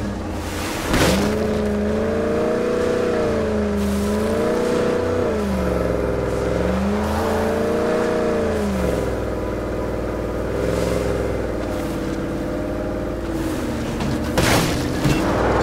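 A vehicle bumps and thuds over rough ground.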